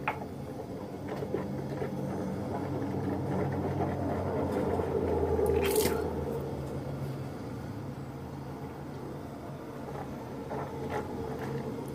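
Water runs from a tap into a cup.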